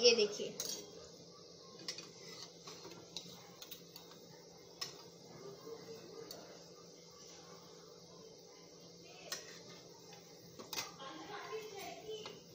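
Oil sizzles softly in a pan.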